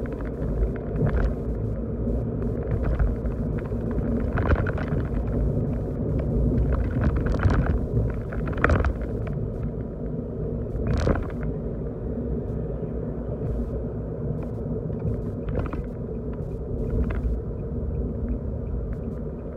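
Tyres roll steadily on the road.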